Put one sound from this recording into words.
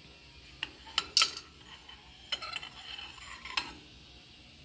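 Metal parts clink and knock.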